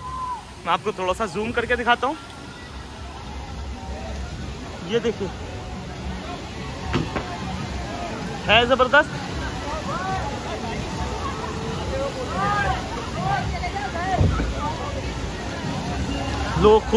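Children shout and chatter at a distance, outdoors.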